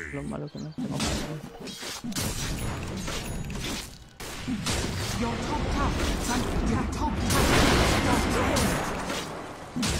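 Game fight effects clash and burst.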